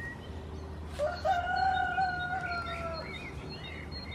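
A goat kid bleats close by.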